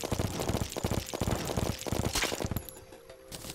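Rapid electronic hits and zaps of a fight ring out.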